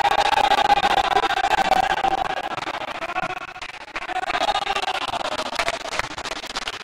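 Young men shout and cheer in a large echoing hall.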